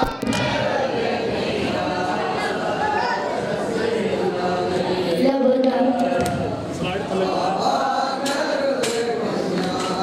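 A crowd of men beat their chests in rhythm.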